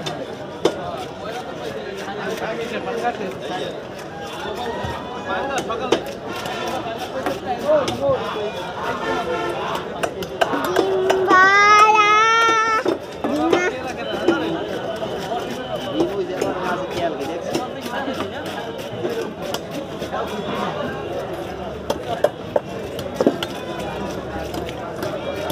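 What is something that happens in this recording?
Fish is sliced and scraped against a fixed blade with wet squelching sounds.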